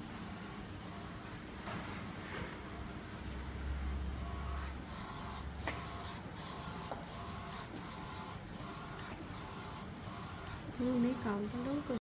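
A printer hums steadily.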